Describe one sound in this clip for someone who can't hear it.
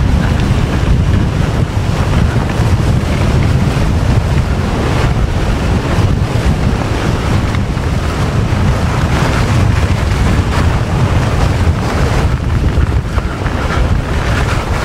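Wind rumbles loudly against the microphone.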